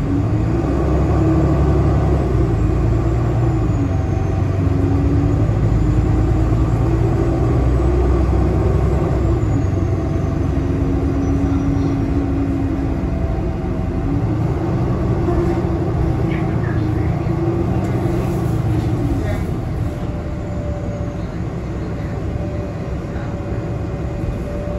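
A bus engine hums and drones steadily, rising and falling in pitch.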